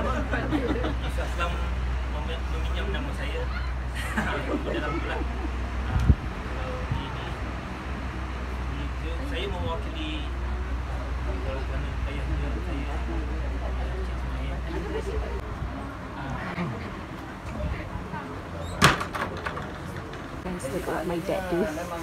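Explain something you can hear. Several people murmur quietly in a small room.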